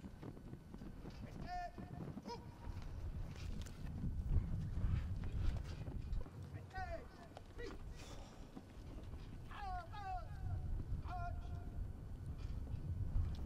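A flag flaps and snaps in the wind.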